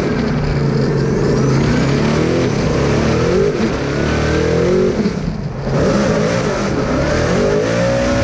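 Tyres screech as the car slides.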